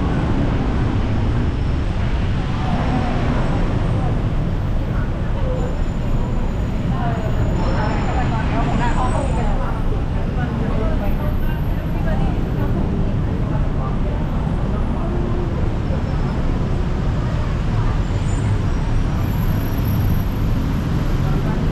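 Heavy city traffic rumbles steadily below.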